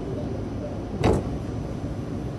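Train doors slide open with a short thump.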